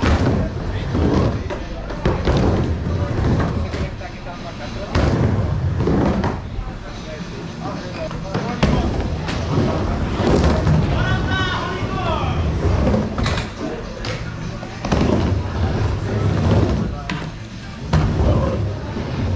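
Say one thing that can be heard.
Skateboard wheels rumble and roar across a wooden bowl.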